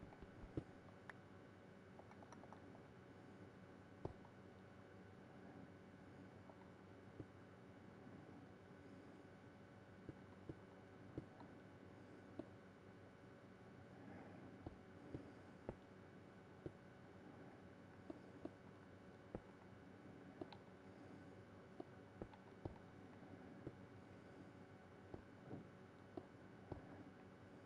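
Stone blocks are placed with short, dull clicks, over and over.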